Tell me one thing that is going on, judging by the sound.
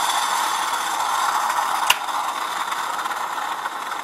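A metal pot clinks against the stovetop.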